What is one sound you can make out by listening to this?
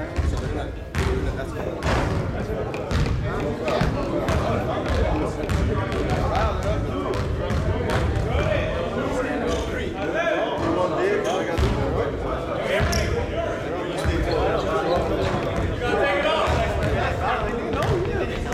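Young men talk casually to each other in a large echoing gym.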